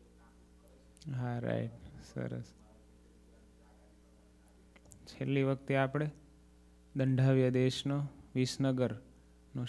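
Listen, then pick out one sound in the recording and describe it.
A man speaks calmly into a microphone, with long pauses.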